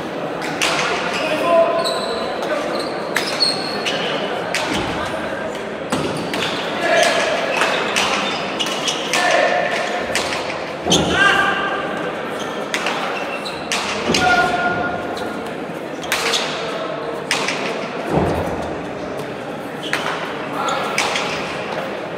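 A hard ball smacks sharply against walls, echoing in a large hall.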